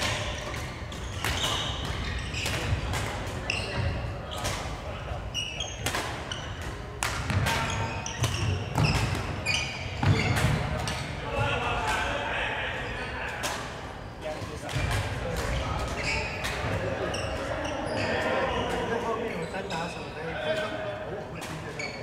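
Shoes squeak on a wooden court floor.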